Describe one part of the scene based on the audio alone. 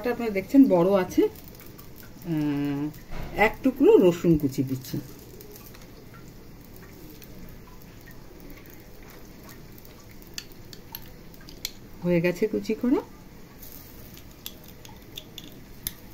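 A metal garlic press clicks as it is squeezed.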